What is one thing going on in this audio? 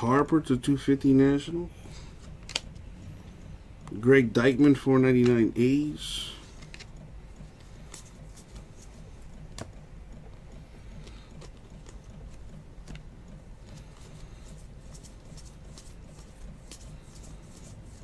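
Trading cards rustle and slide softly against each other as they are flipped through by hand.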